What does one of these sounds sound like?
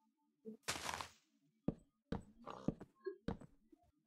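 A wooden block is set down with a soft knock.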